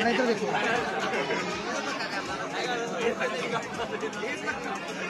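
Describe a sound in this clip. Several women sing together loudly nearby.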